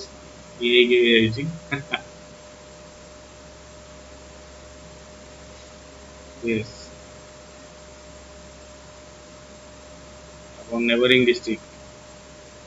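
A young man speaks briefly into a microphone, in short bursts.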